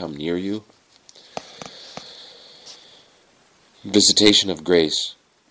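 A man speaks calmly and slowly, close to a microphone.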